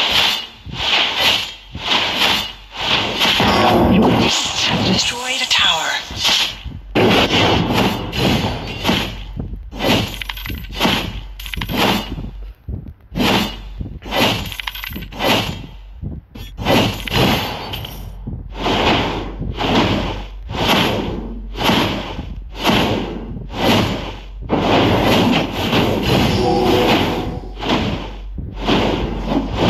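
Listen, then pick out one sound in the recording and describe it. Sword slashes and hits land in quick, steady succession.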